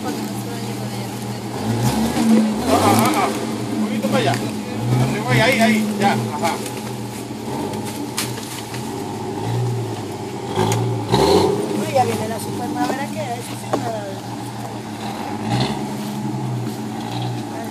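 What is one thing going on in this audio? An engine idles and revs in low bursts.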